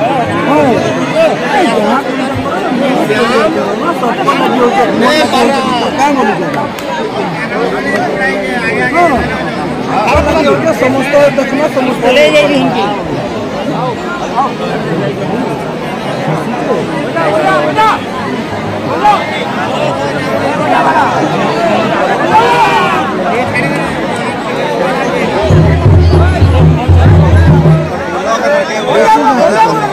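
A large crowd of men shouts and chatters excitedly close by, outdoors.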